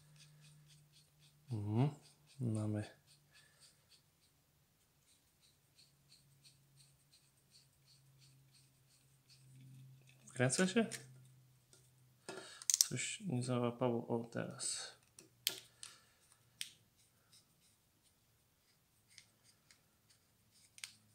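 A small screwdriver clicks and scrapes as it turns tiny screws.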